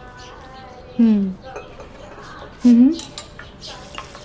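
A woman speaks calmly into a phone, close by.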